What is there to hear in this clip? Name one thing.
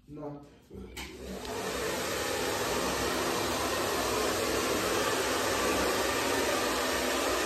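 A hair dryer blows with a loud, steady whoosh.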